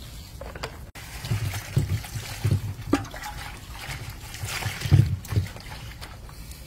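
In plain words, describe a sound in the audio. Water pours and splashes into a bowl.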